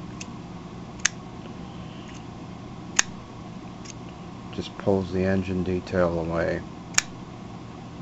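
A plastic toy clicks sharply in the hands.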